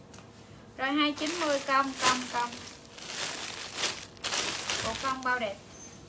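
Plastic bags rustle and crinkle.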